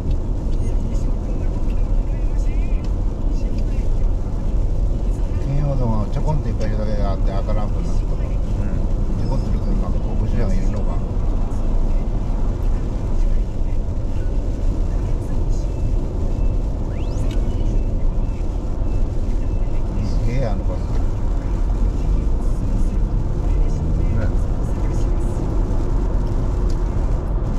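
Tyres hiss on a wet road throughout.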